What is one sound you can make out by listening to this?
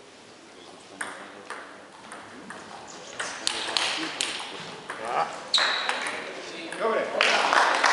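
A table tennis ball clicks back and forth off rubber bats and the table.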